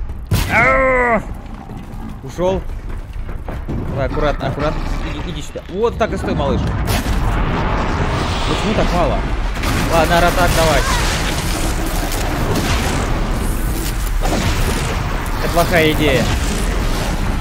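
A young man talks with animation into a microphone, close up.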